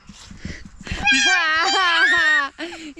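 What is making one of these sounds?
A young child calls out loudly in a high voice close by.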